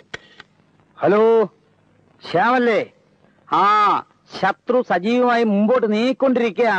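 A middle-aged man speaks loudly and urgently into a telephone.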